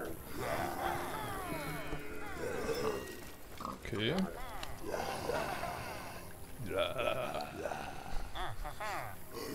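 A herd of small creatures bleats and calls close by.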